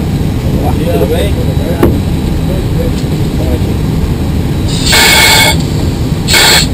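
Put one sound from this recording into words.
A steady low hum of aircraft equipment drones.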